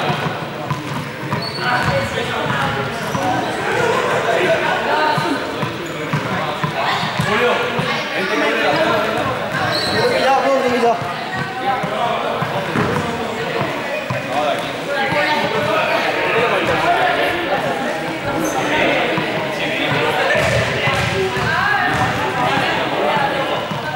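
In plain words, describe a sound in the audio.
Several young people talk and call out in a large echoing hall.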